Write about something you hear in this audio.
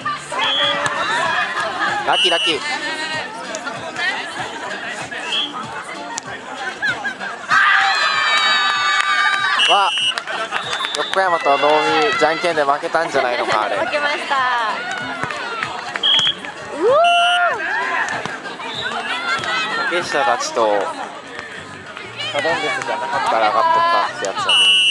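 A crowd of young people shouts and chatters outdoors.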